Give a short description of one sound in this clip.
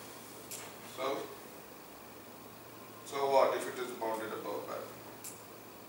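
A man speaks calmly, in short bursts with pauses.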